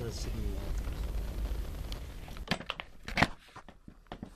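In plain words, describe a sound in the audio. A scooter seat slams shut with a thud.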